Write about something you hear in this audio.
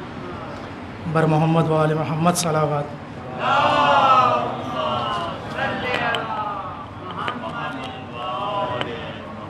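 A man sings loudly through a microphone over a loudspeaker.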